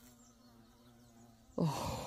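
A bee buzzes softly close by.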